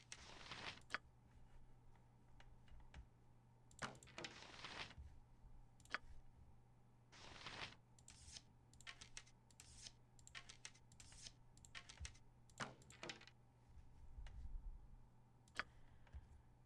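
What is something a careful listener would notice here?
Short interface clicks and clanks sound as items are moved around.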